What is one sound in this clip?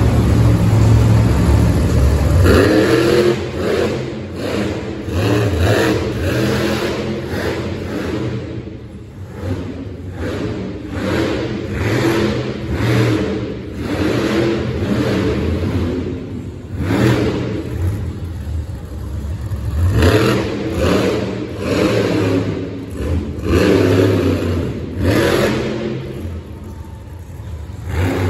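A monster truck engine roars and revs loudly in a large echoing arena.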